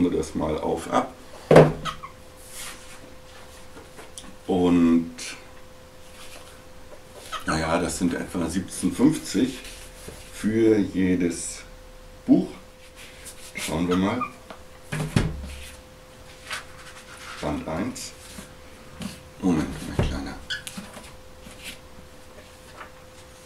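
Cardboard boxes rustle and tap as a man handles them.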